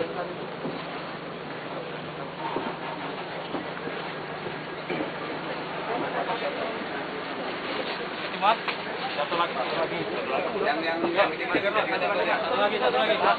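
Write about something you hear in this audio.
A large crowd of men talks and shouts close by, outdoors.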